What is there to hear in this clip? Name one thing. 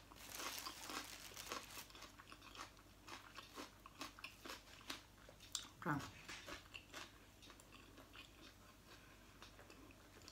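A woman chews food with her mouth closed.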